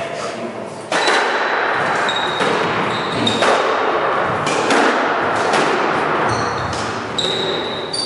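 A squash ball smacks against the walls of an echoing court.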